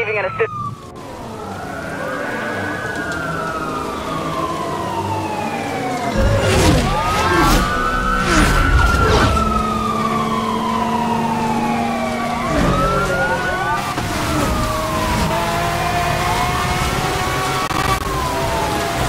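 Police sirens wail and sweep up and down.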